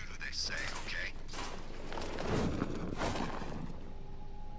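A metal vent cover clangs and rattles as it is pulled open.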